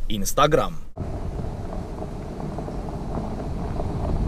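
A car drives slowly over loose gravel, tyres crunching.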